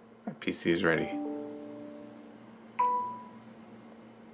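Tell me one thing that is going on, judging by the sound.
A phone plays a short chime of falling notes.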